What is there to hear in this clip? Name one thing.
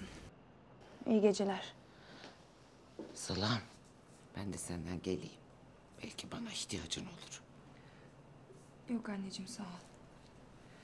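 A middle-aged woman speaks pleadingly close by.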